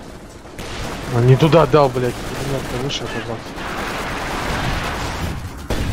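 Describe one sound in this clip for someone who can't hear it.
Gunfire crackles in a distant battle.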